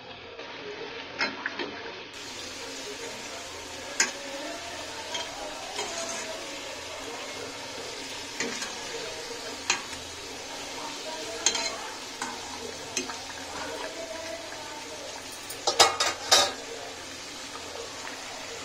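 Hot oil sizzles and bubbles steadily.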